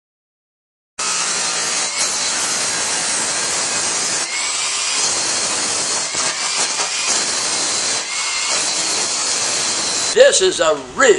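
An electric grinder whines loudly as it grinds metal.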